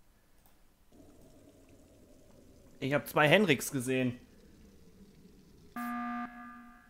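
Water glugs as it pours from one jug into another.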